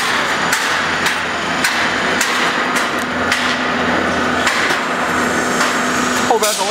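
A roll forming machine hums and rattles steadily in a noisy factory hall.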